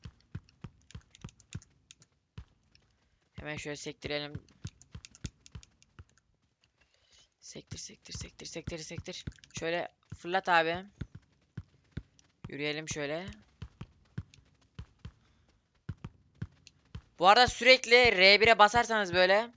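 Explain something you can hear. A football is tapped and kicked along grass in short, quick touches.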